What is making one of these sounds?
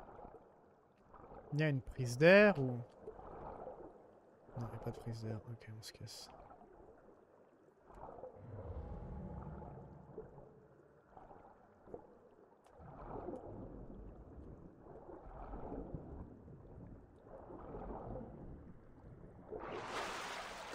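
Muffled water swooshes as a swimmer strokes underwater.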